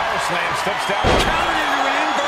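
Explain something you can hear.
A body slams hard onto a wrestling ring mat.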